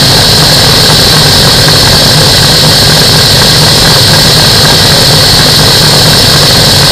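Wind roars against a microphone at high speed.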